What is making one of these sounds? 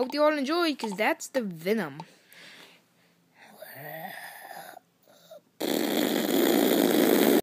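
A spinning toy whirs close by.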